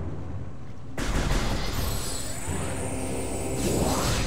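An energy shot bursts with a crackling explosion.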